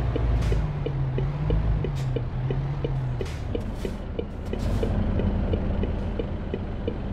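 A truck engine hums steadily as the truck drives along.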